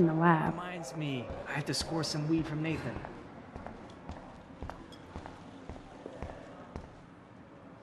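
Footsteps tap on a hard floor at an even pace.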